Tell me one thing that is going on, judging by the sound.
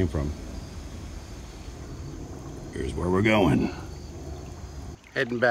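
A shallow creek trickles gently over stones.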